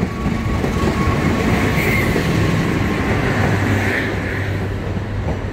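A diesel locomotive rumbles past close by.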